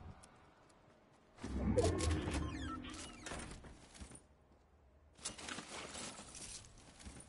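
Footsteps thump on wooden boards.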